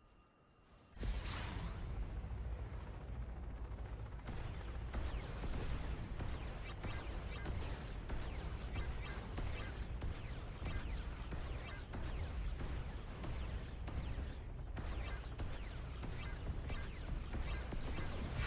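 Spinning blades whir steadily.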